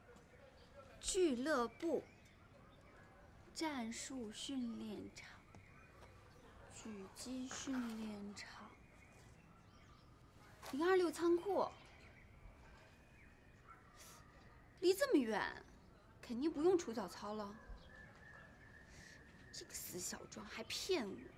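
A young woman talks to herself nearby, in short bursts, with a quizzical tone.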